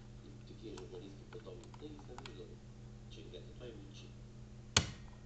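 Thin metal picks click and scrape softly inside a lock.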